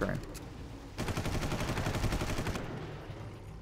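A rifle fires in a rapid burst.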